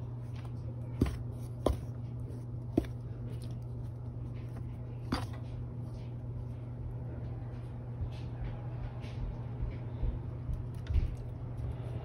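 Something knocks sharply against a metal bowl a few times.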